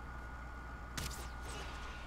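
A weapon strikes with a sharp hit.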